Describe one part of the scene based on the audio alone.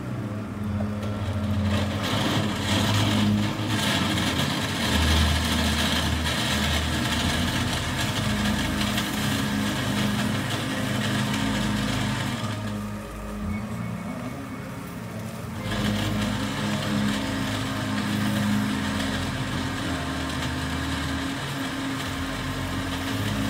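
A utensil stirs and scrapes food in a pan.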